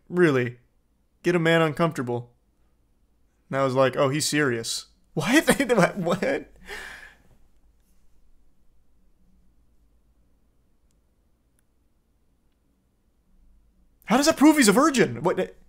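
A young man reads out aloud with animation, close to a microphone.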